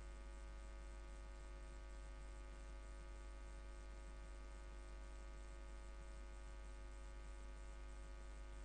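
A mixed choir sings together.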